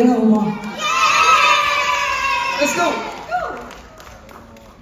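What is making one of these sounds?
A man and a young woman sing together through microphones.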